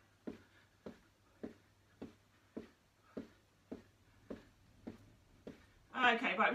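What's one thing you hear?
Feet thud rhythmically on a carpeted floor.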